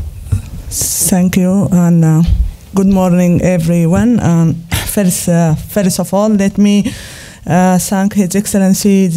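A woman speaks calmly into a microphone, heard through a loudspeaker in a large room.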